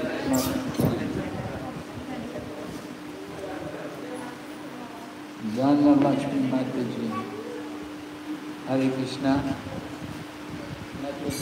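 An elderly man chants through a microphone and loudspeaker.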